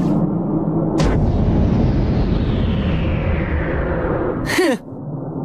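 Crystals crash and rumble heavily.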